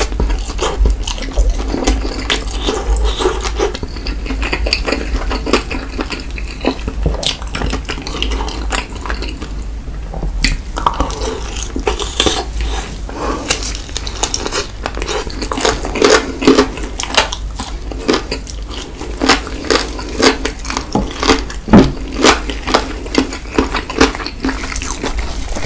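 A man smacks his lips and slurps close to a microphone.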